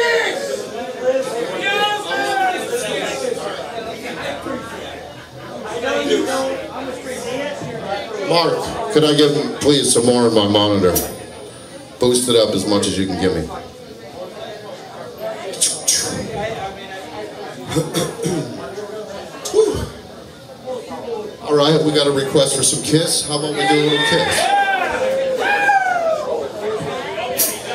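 Electric guitars play loudly through amplifiers.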